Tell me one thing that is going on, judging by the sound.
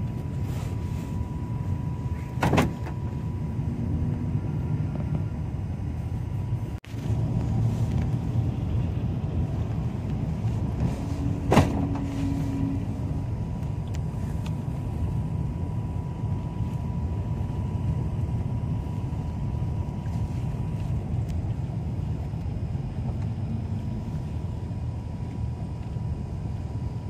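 A car's engine hums steadily as it drives along.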